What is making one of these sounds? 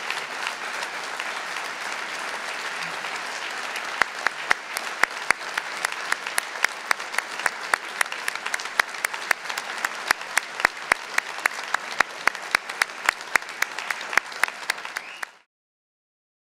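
A large crowd applauds in a big echoing hall.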